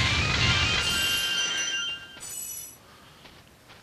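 Bright sparkling chimes ring out.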